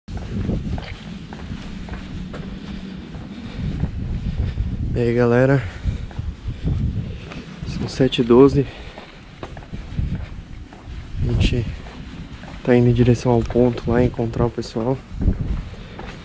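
Footsteps walk along a paved pavement outdoors.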